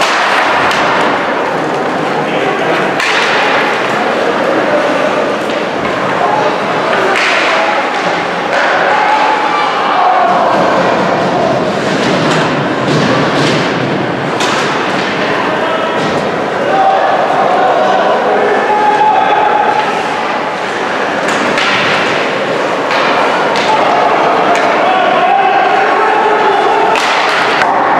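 Spectators chatter and shout in the stands.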